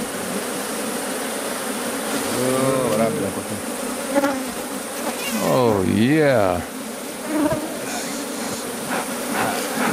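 Bees buzz steadily around a hive.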